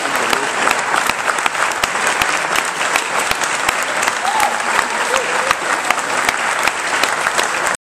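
A big band plays lively music in a large hall.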